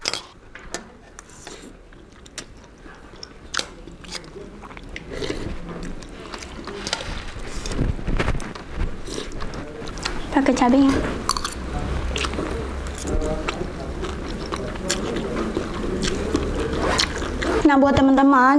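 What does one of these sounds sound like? A young woman slurps noodles close to a microphone.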